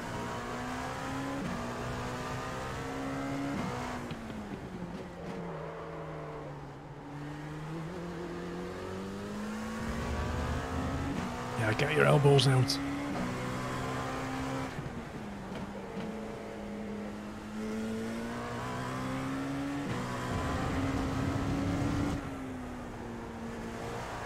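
A race car engine revs up and down as gears shift.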